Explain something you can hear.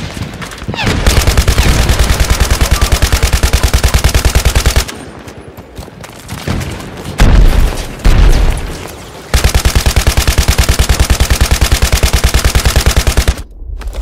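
A machine gun fires rapid bursts of loud shots.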